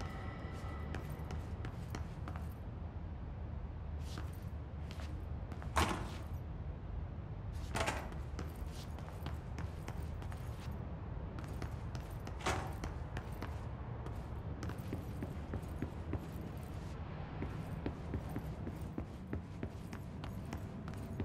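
Footsteps tap on a hard floor, quickening into a run.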